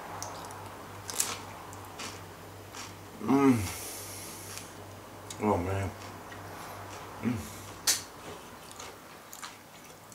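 A man crunches a chip.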